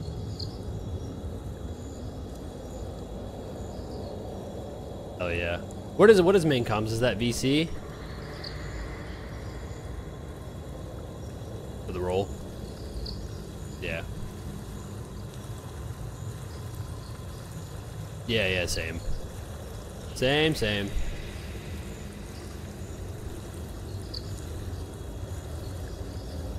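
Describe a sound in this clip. A river rushes steadily.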